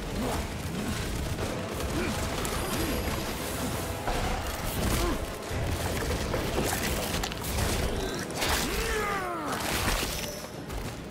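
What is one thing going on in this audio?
A monster screeches and snarls.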